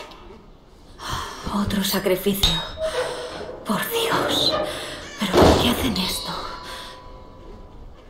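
A heavy wooden chest lid is forced, creaks and bangs open.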